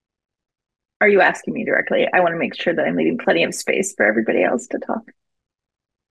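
A young woman speaks warmly over an online call.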